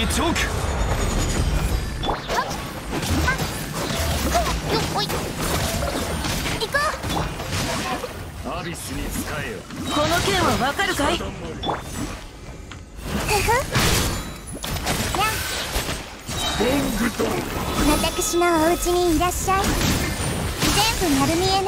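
Magic blasts crackle and burst in quick succession.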